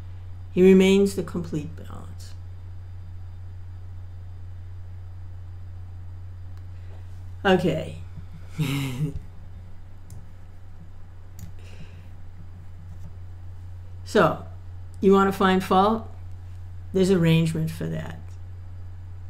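An older woman speaks calmly and close by, in short bursts with pauses.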